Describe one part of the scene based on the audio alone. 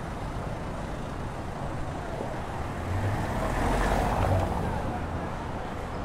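A car drives past close by on a cobbled street.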